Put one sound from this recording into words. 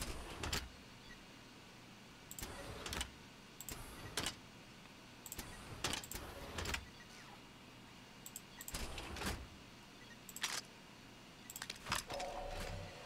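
Soft menu clicks and whooshes sound one after another.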